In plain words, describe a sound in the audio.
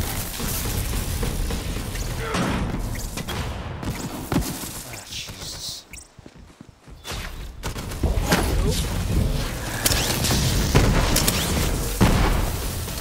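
Electric energy crackles and zaps loudly.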